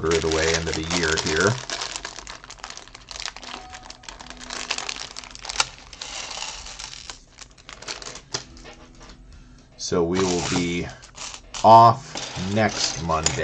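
Plastic bricks click and rattle as hands sort through them.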